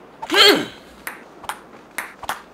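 A ping-pong ball taps sharply against paddles and a table.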